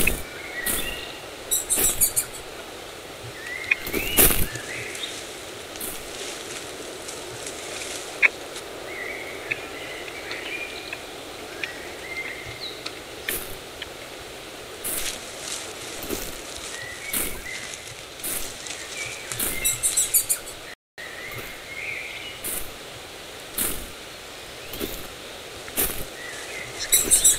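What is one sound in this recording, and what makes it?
Footsteps swish through grass at a steady walking pace.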